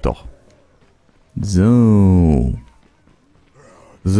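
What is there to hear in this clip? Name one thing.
Footsteps run across gravel and pavement.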